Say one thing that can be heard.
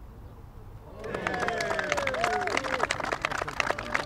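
A man cheers loudly outdoors.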